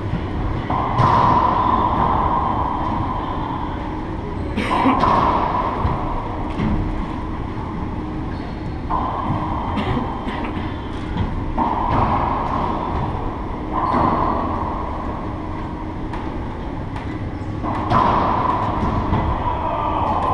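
A rubber ball smacks off racquets and walls with sharp echoing bangs in a large hard-walled court.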